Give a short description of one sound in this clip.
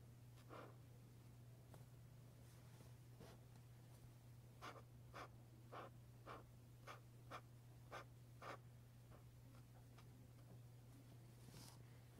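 A marker taps and squeaks on paper.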